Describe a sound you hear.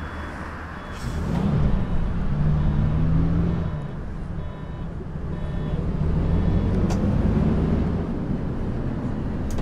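A diesel city bus pulls away with a rising engine note.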